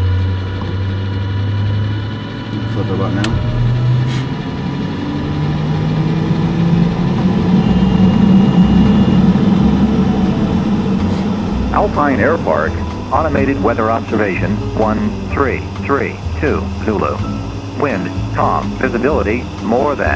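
Aircraft engines drone steadily and rise in pitch as they power up.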